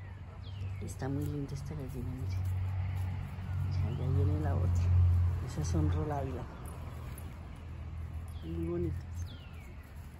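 A hen clucks softly close by.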